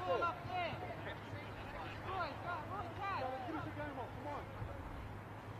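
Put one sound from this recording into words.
Men shout to each other across an open field, some distance away.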